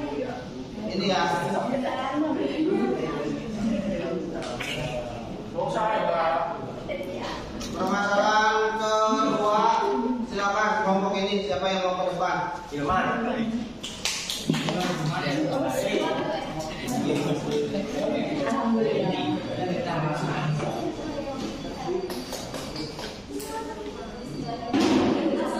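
A young woman speaks steadily to a room, with a slight echo.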